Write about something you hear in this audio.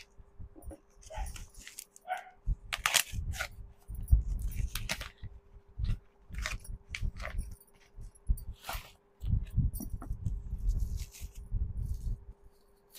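Paper packaging rustles and crinkles as it is torn open.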